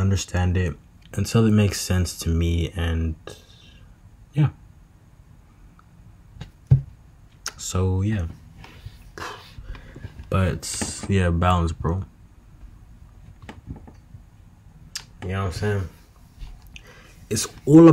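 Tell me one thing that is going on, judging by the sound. A young man talks casually and close up, in short bursts with pauses.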